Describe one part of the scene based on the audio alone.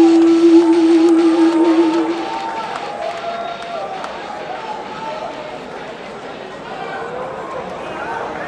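Dance music plays loudly over loudspeakers.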